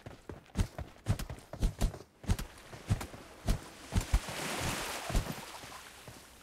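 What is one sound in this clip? Footsteps thud quickly on sand.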